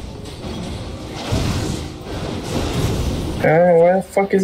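Game battle effects crackle and boom.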